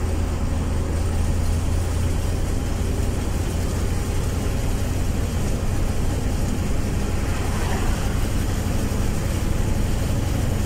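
An engine rumbles steadily from inside a moving vehicle.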